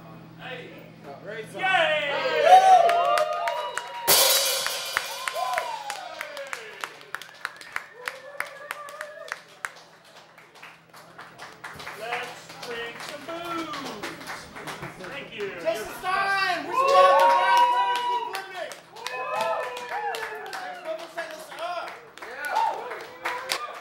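Drums and cymbals clatter in quick taps.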